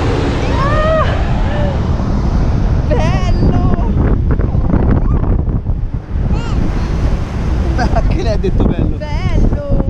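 Small children squeal and shout close by.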